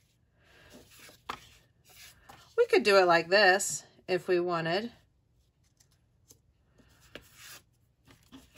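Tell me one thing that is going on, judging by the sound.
Paper pieces rustle and slide softly over a paper sheet.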